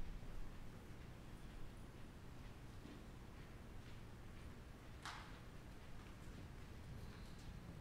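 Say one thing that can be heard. Footsteps cross a hard floor in a large echoing hall.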